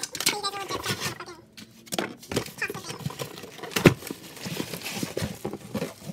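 Cardboard flaps rustle and scrape.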